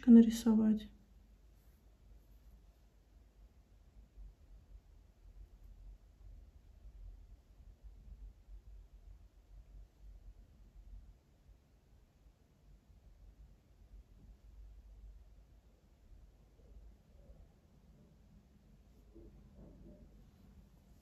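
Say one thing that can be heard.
A paintbrush brushes softly on paper.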